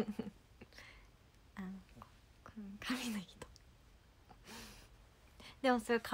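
A young woman laughs, close to a microphone.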